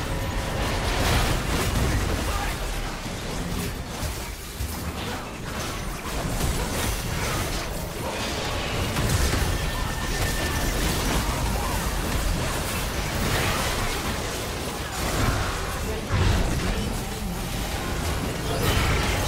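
Magic spells blast and crackle in a busy fight.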